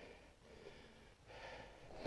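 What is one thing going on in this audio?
Footsteps crunch softly on snow.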